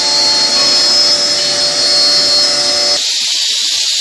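A machine motor whines steadily.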